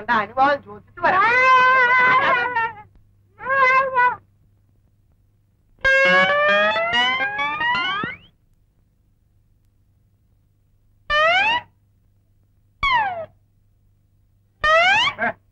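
A man lets out long, loud, drawn-out cries.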